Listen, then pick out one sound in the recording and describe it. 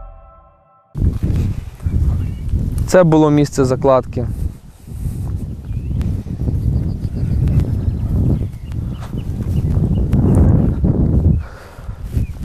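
Wind rumbles against a microphone outdoors.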